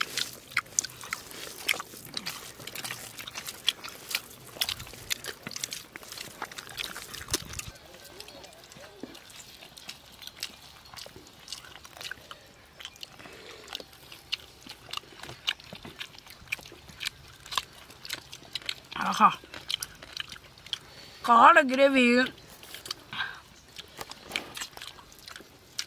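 A young man chews food with loud, crunchy bites.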